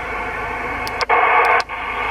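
A knob on a CB radio clicks as it is turned.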